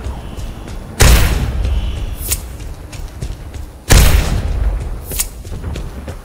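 A heavy weapon fires loud blasts.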